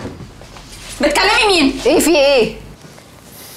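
A young woman speaks with emotion nearby.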